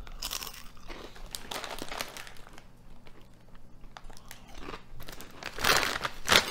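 A man crunches a crisp chip close by.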